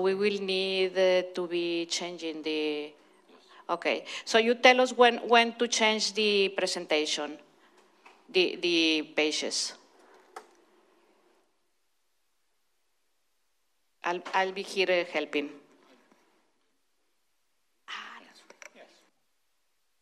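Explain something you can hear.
A woman speaks over a microphone in a large hall, in short bursts with pauses.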